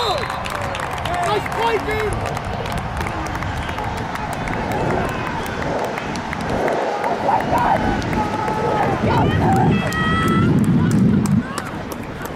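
Young boys shout and cheer nearby.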